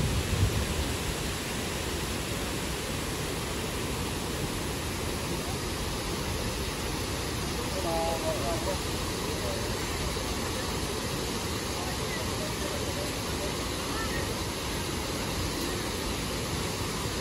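Fountains splash and gush steadily outdoors.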